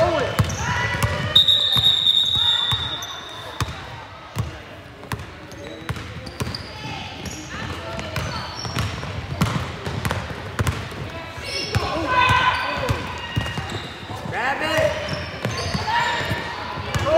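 A basketball bounces on a hard wooden floor in a large echoing gym.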